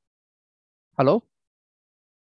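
A young man speaks briefly through a headset microphone over an online call.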